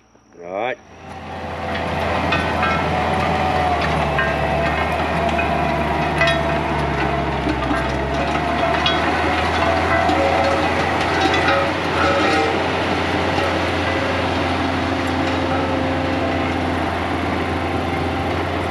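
A tracked loader's engine roars steadily nearby.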